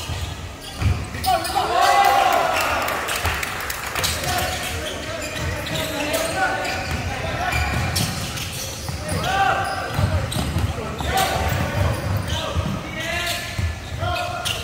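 A basketball bounces on a wooden floor with dull thuds.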